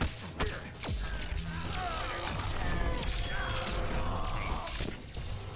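Flesh and bone splatter wetly in a gory burst.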